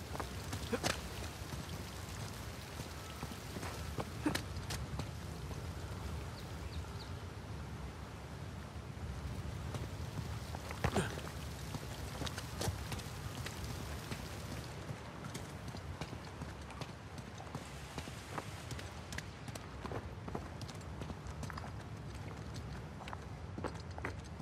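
Footsteps crunch on rock.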